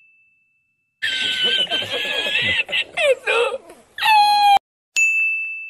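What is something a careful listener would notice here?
An elderly man laughs loudly and heartily.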